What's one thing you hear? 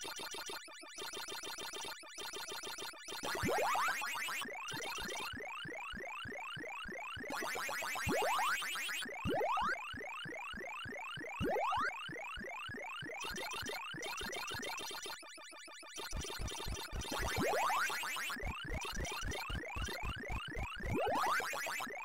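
Retro arcade game sound effects play with rapid beeps and rising chirps.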